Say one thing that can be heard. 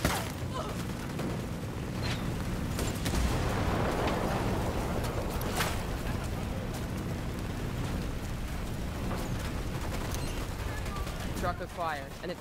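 Large explosions boom and fire roars loudly.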